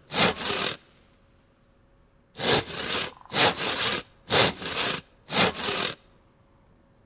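A hand saw rasps through wood in quick, repeated strokes.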